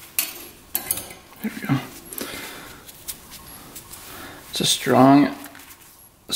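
Snap ring pliers click against a metal circlip.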